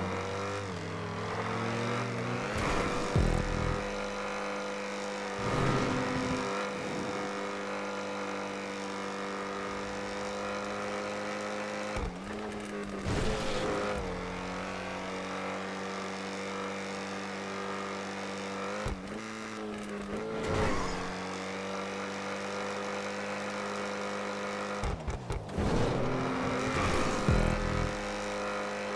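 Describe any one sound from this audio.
A car engine drones at a steady high pitch, with brief shifts in tone.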